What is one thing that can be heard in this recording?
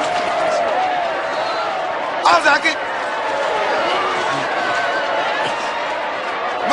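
A crowd of women wails and cries out loudly nearby.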